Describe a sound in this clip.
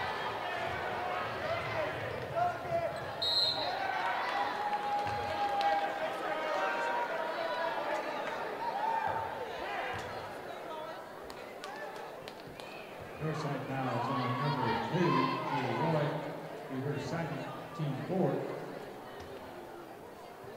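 A crowd in a large echoing gym cheers and shouts.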